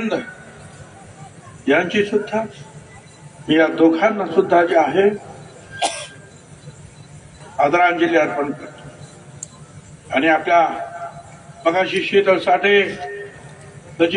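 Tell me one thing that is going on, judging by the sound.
An elderly man speaks forcefully into a microphone over loudspeakers, in short bursts with pauses.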